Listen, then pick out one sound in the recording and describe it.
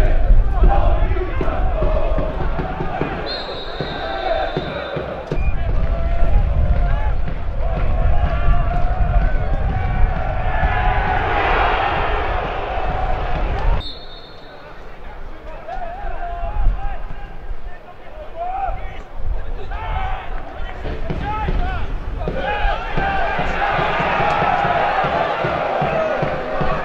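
A large stadium crowd cheers and roars outdoors.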